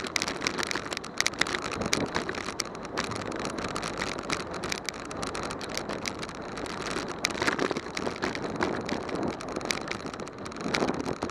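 Wind rushes and buffets loudly over the microphone outdoors.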